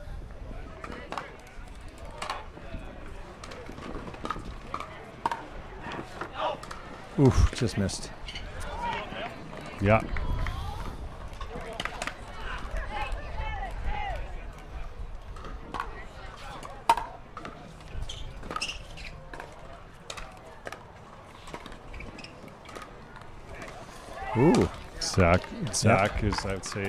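Paddles hit a plastic ball with sharp pops, back and forth.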